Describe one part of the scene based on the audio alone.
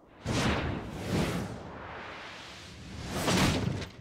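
A body falls and thuds onto a wooden floor.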